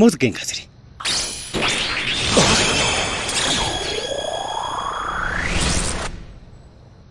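A shimmering magical chime rings out and swells.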